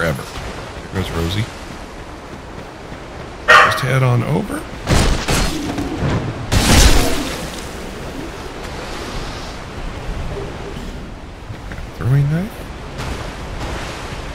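Footsteps run over grass and leaves.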